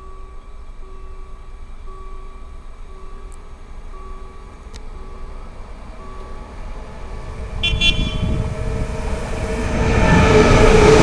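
An electric train approaches with a steady humming whine that grows louder.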